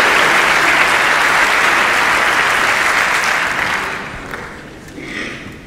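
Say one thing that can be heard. A large audience applauds loudly in a hall, and the applause fades away.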